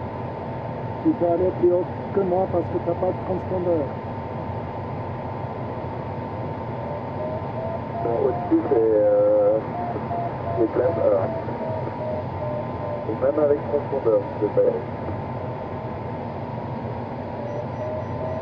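Air rushes over a glider's canopy in flight.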